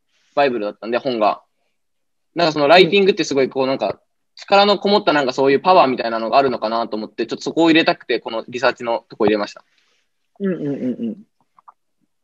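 A woman talks calmly over an online call.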